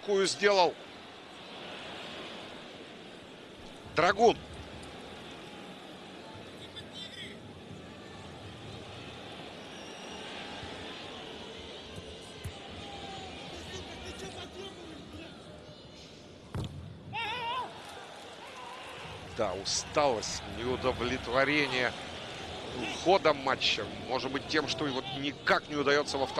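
A stadium crowd murmurs and cheers steadily in a large open space.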